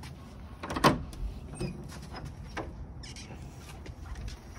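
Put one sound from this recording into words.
A wooden gate swings open.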